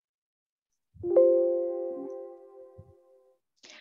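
A computer alert chime rings once and fades.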